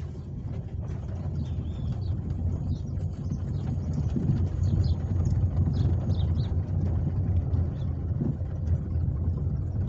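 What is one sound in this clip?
A freight train rumbles and rattles past nearby.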